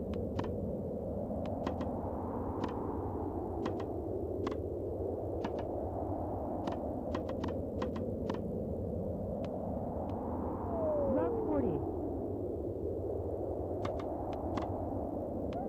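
A video game tennis ball is hit back and forth with sharp, quick pops.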